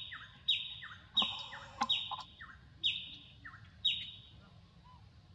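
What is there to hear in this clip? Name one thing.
A baby monkey screams with shrill, repeated cries close by.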